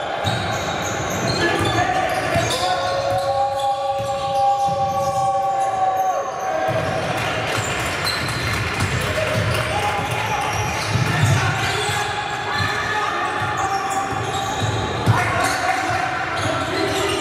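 Sneakers squeak on a hard court in an echoing hall.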